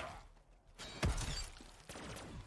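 A game's electric weapon crackles and zaps loudly.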